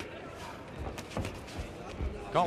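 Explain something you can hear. A boxing glove thuds against a body.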